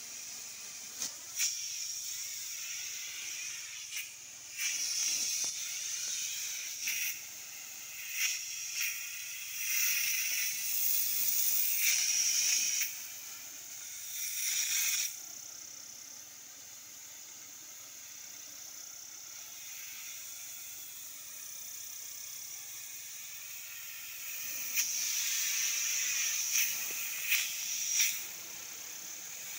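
A sprayer nozzle hisses in bursts, outdoors.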